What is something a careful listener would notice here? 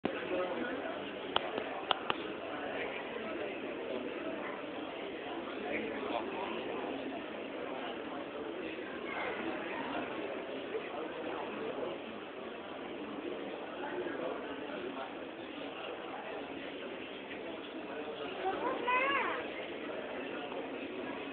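A large crowd of men murmurs and chants in a crowded, echoing hall.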